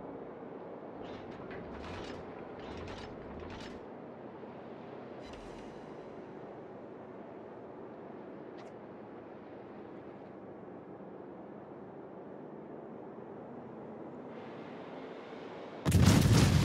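A ship's engine rumbles steadily over rushing water.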